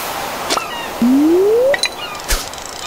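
A rising chime plays as a fish is caught.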